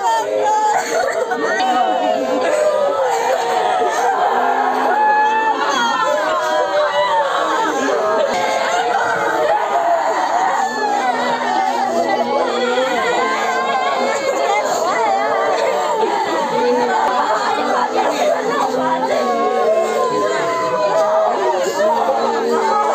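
Several women wail and sob loudly nearby.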